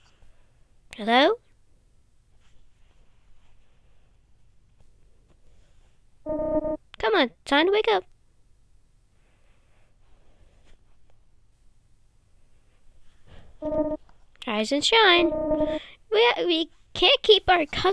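Short electronic chimes and blips play in quick bursts.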